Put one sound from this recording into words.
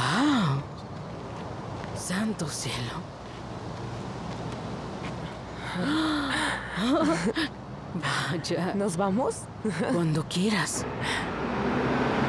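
A woman talks with animation outdoors.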